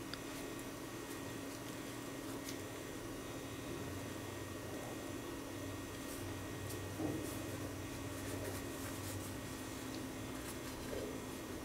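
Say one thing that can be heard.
Hands pull apart soft bread with a faint tearing sound.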